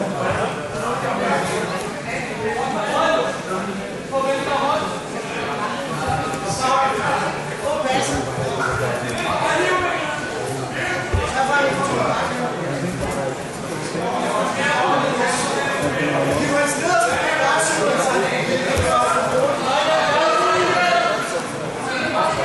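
Several people shout and chatter nearby in a large echoing hall.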